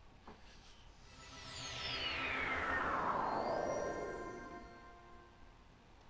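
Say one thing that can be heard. A shimmering magical whoosh sweeps downward in pitch.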